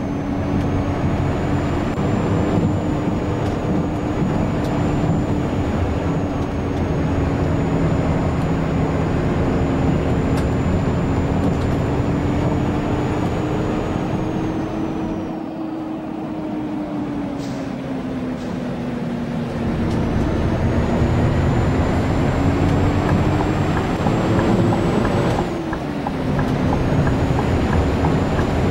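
A bus engine hums steadily, its pitch rising and falling as it changes gear.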